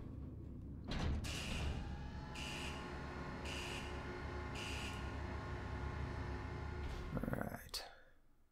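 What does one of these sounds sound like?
A helicopter engine starts up and whines steadily.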